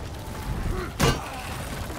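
A sword swishes through the air with a sharp whoosh.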